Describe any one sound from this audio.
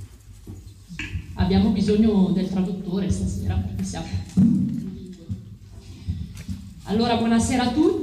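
A man speaks calmly through a microphone in a large echoing hall.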